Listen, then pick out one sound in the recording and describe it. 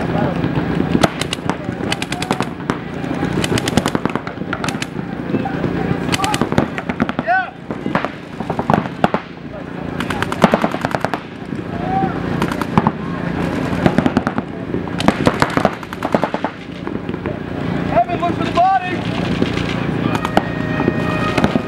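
A paintball marker fires in rapid bursts.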